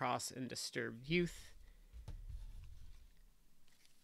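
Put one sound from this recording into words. Plastic card sleeves slide and tap on a tabletop.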